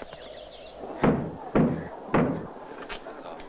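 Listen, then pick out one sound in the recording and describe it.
A man knocks loudly on a wooden door.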